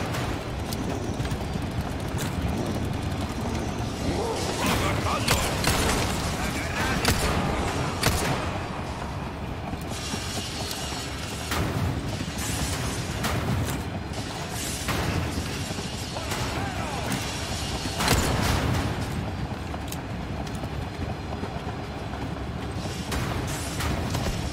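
A mine cart rumbles and rattles along metal rails.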